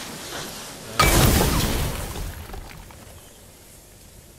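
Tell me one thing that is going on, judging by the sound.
A burst of fire roars and crackles, then fades.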